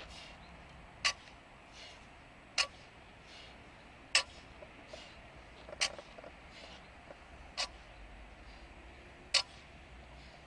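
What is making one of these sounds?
Barbell plates clank as a weight is set down on the ground again and again.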